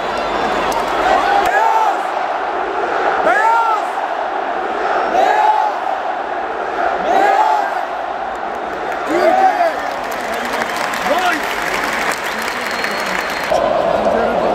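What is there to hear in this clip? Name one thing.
A huge stadium crowd chants loudly in rhythmic unison, echoing across the stands.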